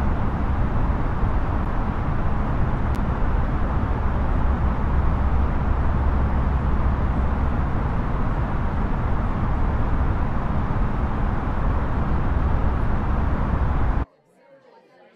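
A jet airliner's engines and rushing air roar steadily inside the cockpit.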